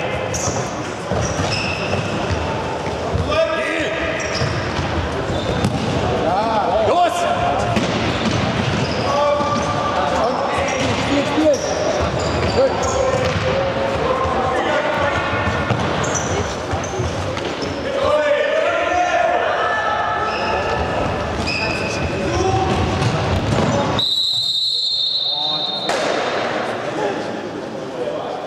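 Shoes squeak sharply on a hard floor in a large echoing hall.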